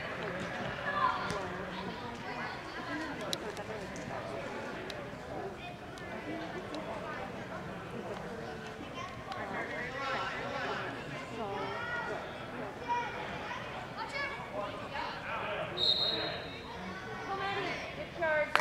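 Children shout and call out across a large echoing indoor hall.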